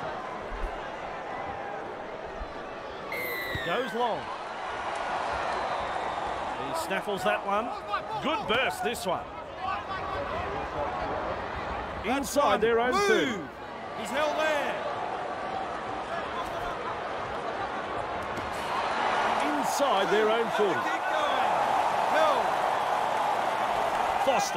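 A large crowd cheers and murmurs steadily in a stadium.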